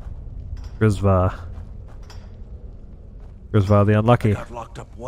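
A man speaks in a rough, pleading voice.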